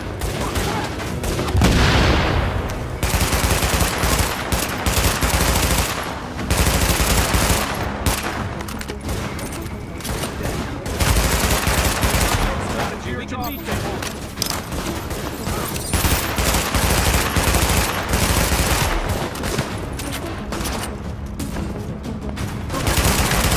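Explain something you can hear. Guns fire in rapid bursts, close by and loud.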